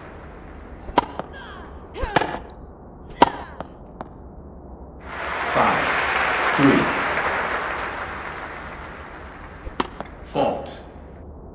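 A tennis ball is struck with a racket, with sharp pops.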